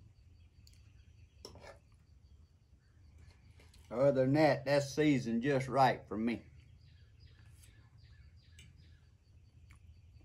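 A fork clinks lightly against a plate.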